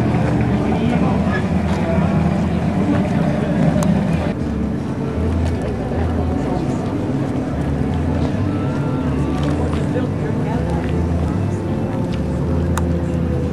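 Wind gusts outdoors, rumbling steadily.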